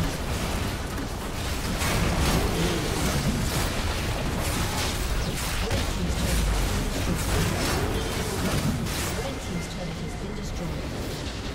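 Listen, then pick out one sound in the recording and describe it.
Spell effects crackle and blast in quick bursts.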